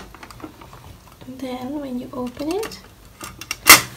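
A plastic lid clicks open.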